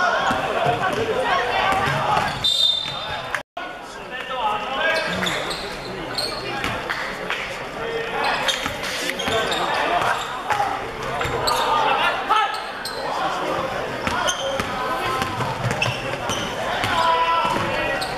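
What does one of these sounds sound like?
A basketball thuds as it is dribbled on a wooden floor.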